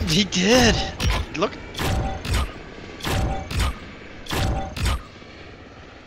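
A game's score counter whooshes in short bursts.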